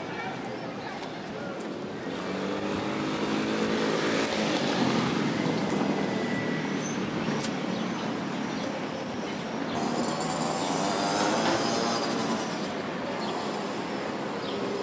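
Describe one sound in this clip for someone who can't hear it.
Cars drive past on a nearby street.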